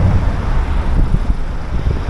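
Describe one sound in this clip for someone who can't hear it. A van drives past on the road.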